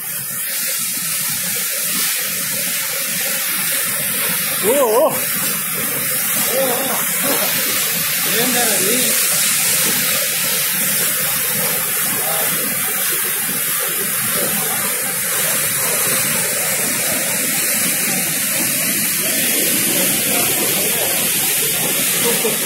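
A waterfall roars steadily and loudly close by.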